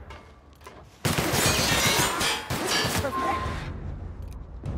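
A laser beam blasts with a harsh crackle.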